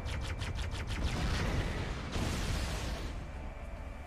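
A loud explosion roars.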